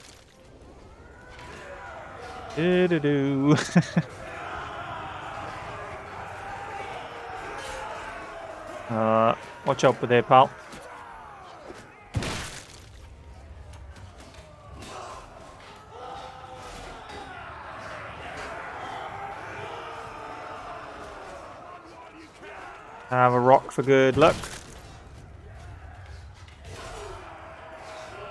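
A large crowd of soldiers shouts and clamours in battle.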